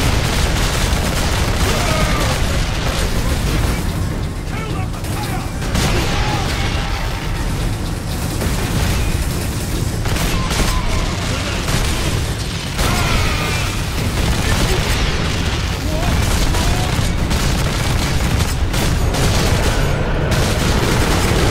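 Rapid gunfire rattles loudly and without pause.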